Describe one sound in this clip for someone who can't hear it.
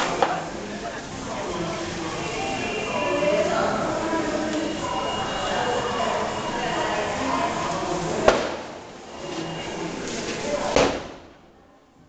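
A sparkler fizzes and hisses close by.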